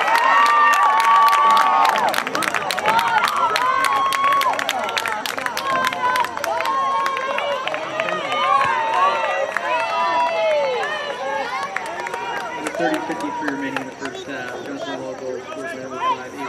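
A crowd claps and cheers from the stands.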